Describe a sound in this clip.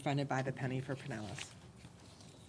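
A middle-aged woman speaks calmly into a microphone in a large room.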